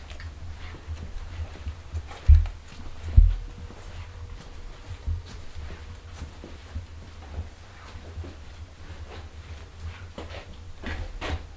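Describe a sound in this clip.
Footsteps shuffle slowly across a hard floor.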